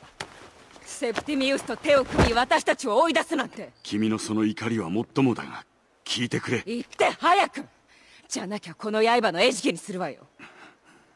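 A young woman speaks angrily and urgently, close by.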